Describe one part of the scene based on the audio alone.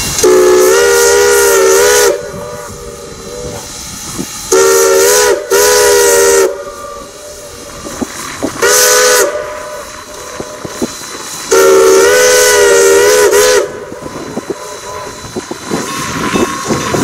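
A steam locomotive chugs and puffs steam as it moves slowly along.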